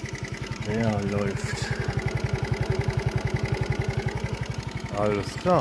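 A scooter engine idles close by with a fast, steady putter.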